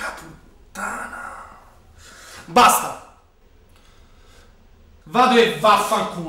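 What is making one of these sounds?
A young man speaks with emotion, close by.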